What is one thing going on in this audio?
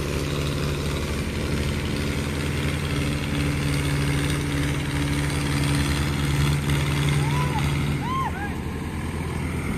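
A tractor engine roars steadily under heavy strain outdoors.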